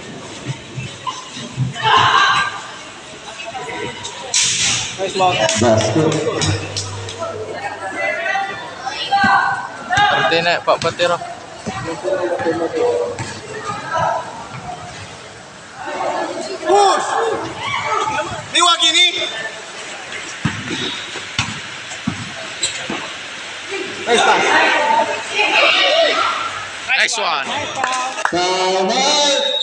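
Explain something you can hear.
A crowd of young spectators chatters and shouts in a large echoing hall.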